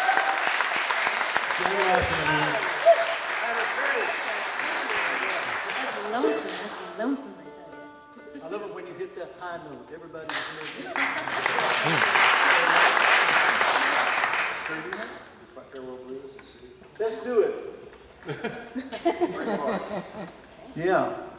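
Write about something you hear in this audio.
A string band plays a lively tune on mandolin, guitar and upright bass in an echoing hall.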